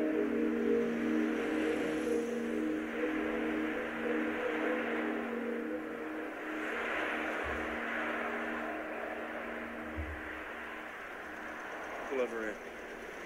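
A vehicle drives along a road at night.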